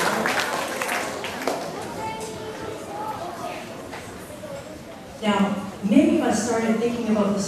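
A large crowd of children chatters in an echoing hall.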